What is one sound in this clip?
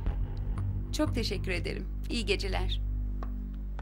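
A young woman speaks brightly nearby.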